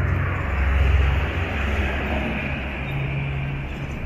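A minibus drives past.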